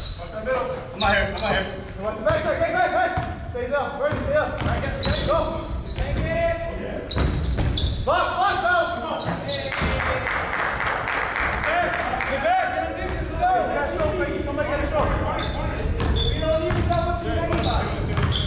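A basketball bounces with echoing thuds in a large hall.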